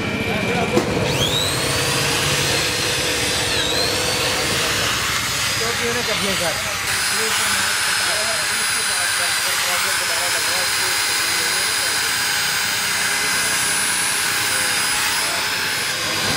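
An electric power tool whirs loudly and steadily.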